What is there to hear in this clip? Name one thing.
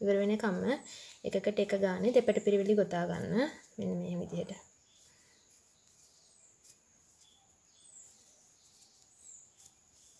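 A crochet hook softly pulls yarn through loops.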